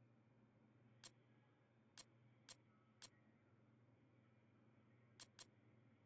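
Short, sharp menu clicks tick as a selection moves through a list.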